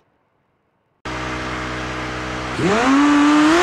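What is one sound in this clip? A car engine idles.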